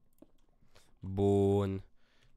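A young man speaks briefly into a microphone, close by.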